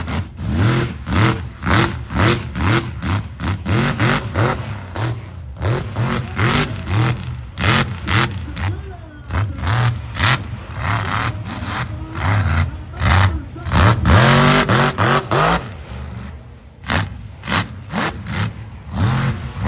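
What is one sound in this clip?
Giant tyres churn and spray dirt.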